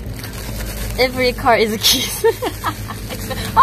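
A young woman laughs close to the microphone.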